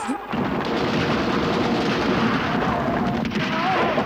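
Horses gallop hard over sand.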